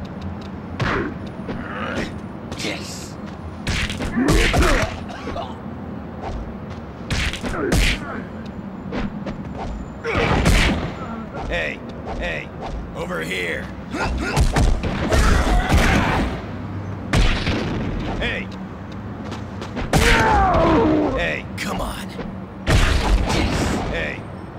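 Punches and kicks land with heavy thuds again and again.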